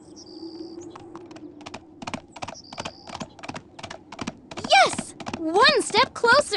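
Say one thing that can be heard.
Small hooves patter quickly in a steady trot.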